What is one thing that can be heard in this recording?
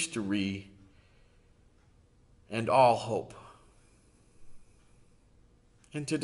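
A middle-aged man speaks calmly and slowly, close to a microphone, with short pauses.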